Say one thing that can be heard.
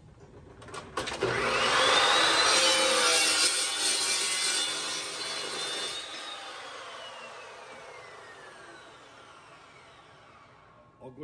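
A metal-cutting chop saw whines up to speed and slowly winds down.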